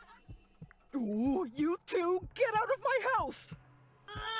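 Children talk with animation in cartoonish voices.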